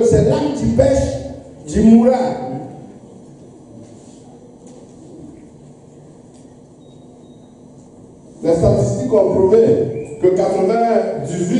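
A man preaches with animation into a microphone, heard through loudspeakers in an echoing hall.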